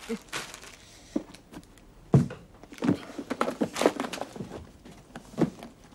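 Latches on a case click.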